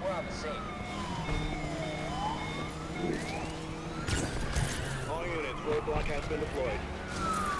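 Police sirens wail, rising and falling in pitch.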